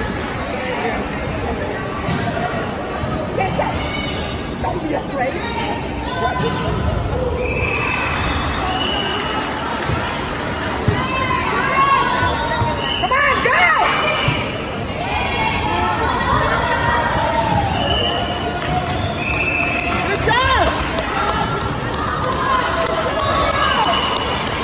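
Young women and girls call out and chatter in a large echoing gym.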